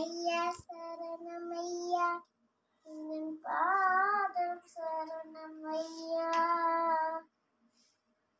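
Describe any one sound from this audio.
A young girl sings a slow song up close.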